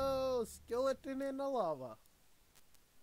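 A young man vocalizes loud, drawn-out notes close to a microphone.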